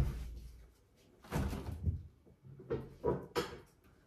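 A cupboard door opens and bangs shut.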